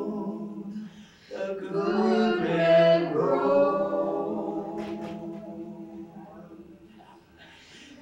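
A small group of adult men and women sing long, held notes together through microphones, then the singing fades.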